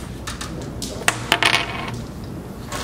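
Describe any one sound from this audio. A striker clacks sharply into a cluster of game pieces, scattering them across a board.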